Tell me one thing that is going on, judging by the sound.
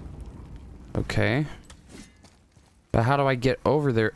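A man speaks into a close microphone.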